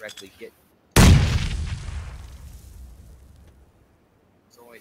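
A grenade explodes nearby with a loud boom that rumbles away.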